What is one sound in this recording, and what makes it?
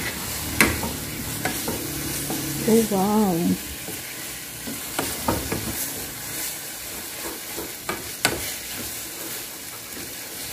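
A wooden spatula scrapes and knocks against a pan.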